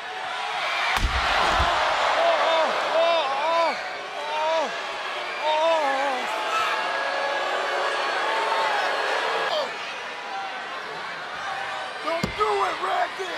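A metal chair slams down hard on a body.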